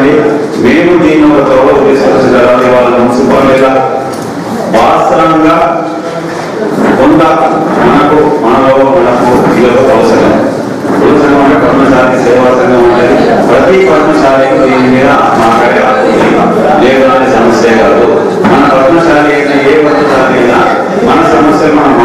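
A middle-aged man speaks forcefully into a microphone, heard through a loudspeaker.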